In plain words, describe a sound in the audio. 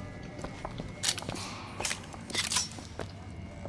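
A gun clicks and clatters as it is reloaded.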